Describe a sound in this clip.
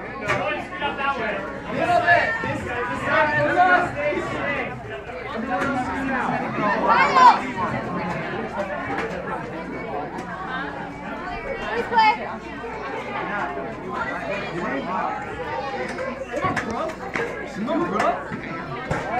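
A crowd of children and adults chatter and shout excitedly.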